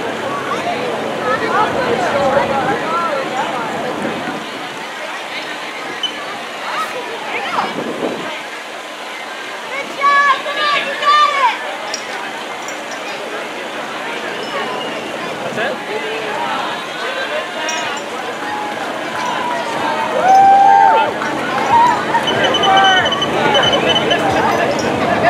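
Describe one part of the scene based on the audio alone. A crowd of spectators chatters outdoors at a distance.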